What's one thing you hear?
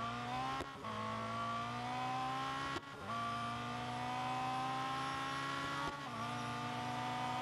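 A racing car engine roars at high revs, rising in pitch and dropping briefly with each gear change.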